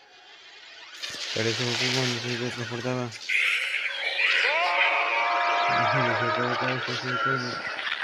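Flames crackle and roar close by.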